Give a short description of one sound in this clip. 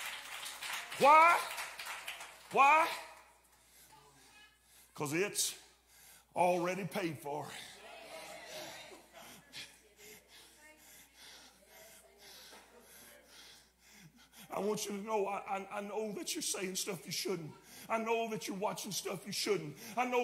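A man preaches loudly and with fervour through a microphone in an echoing hall.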